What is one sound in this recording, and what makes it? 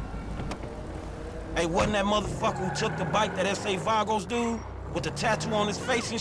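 A car engine runs and the car drives off.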